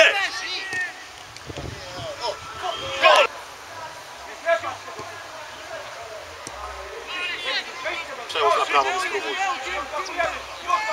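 Young men shout to each other from a distance outdoors.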